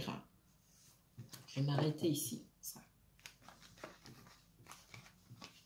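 Paper cards slide and rustle across a cloth surface.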